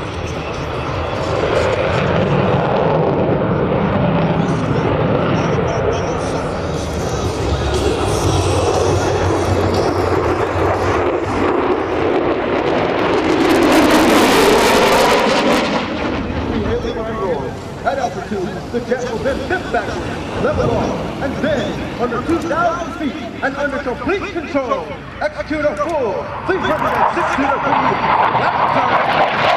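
A jet engine roars loudly overhead.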